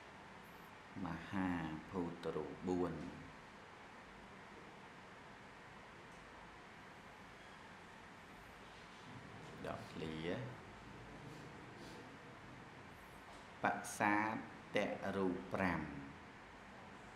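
A middle-aged man speaks calmly into a microphone, with pauses between phrases.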